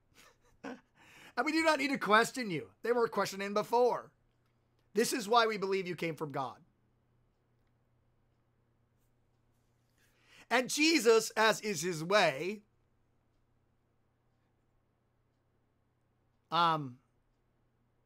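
A man speaks calmly and with animation into a close microphone, pausing now and then.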